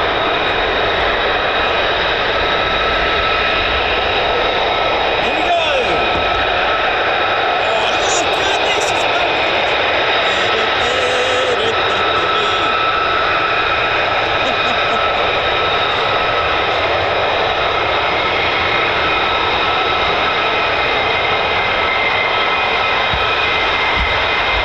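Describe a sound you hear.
A high engine whine rings steadily.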